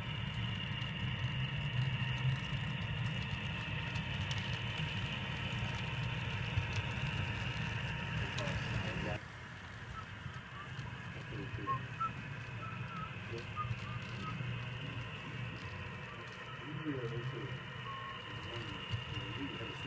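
A model diesel locomotive hums and rumbles steadily as it rolls along the track.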